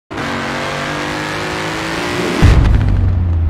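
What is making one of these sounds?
A car engine roars as a car speeds past.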